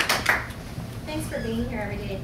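A woman speaks calmly in a room.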